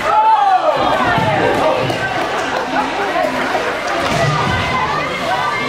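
Young children shout and call out in a large echoing hall.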